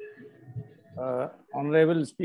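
An elderly man speaks over an online call.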